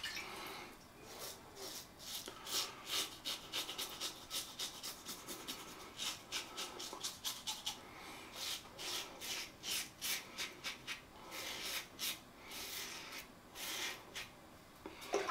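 A razor scrapes through stubble in short, rasping strokes, close by.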